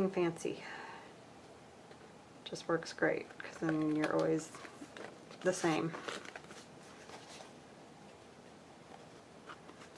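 Small scissors snip through thin card.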